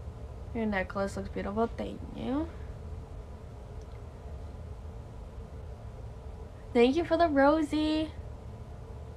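A young woman speaks casually close to a phone microphone, in short bursts with pauses.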